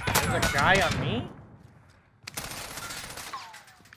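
A rifle reloads with metallic clicks.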